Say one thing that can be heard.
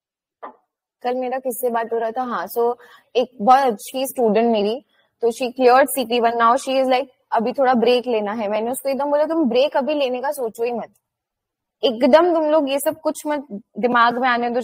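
A young woman speaks calmly and steadily through a microphone, as on an online call.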